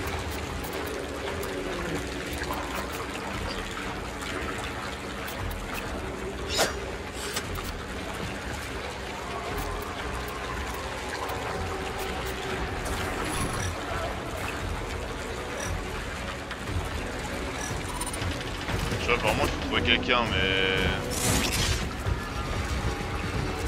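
Water rushes and roars down a tall waterfall.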